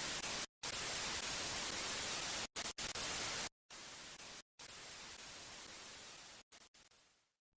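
Television static hisses and crackles in bursts.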